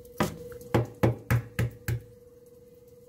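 An egg taps sharply against a hard edge several times.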